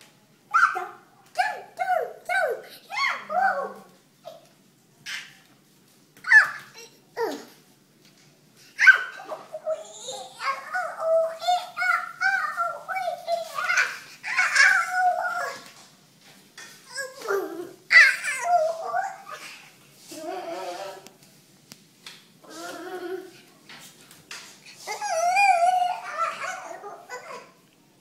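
A young child talks and babbles excitedly close by.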